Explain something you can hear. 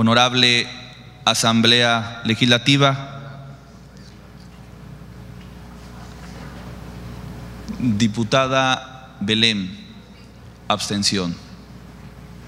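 A man speaks with animation through a microphone in a large room.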